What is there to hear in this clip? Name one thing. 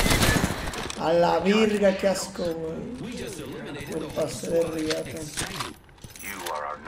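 A young man speaks excitedly into a microphone close by.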